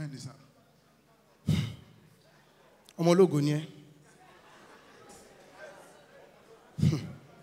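A young man speaks loudly through a microphone.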